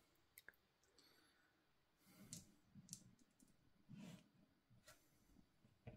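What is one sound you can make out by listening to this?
Plastic dice rattle and clatter onto a table.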